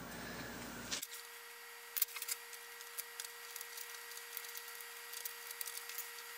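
Metal parts clink and scrape against each other.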